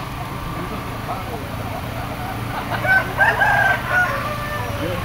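A chicken squawks and clucks close by.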